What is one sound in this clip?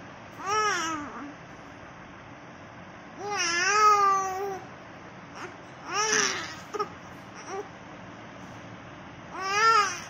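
A baby whines and cries in short bursts close by.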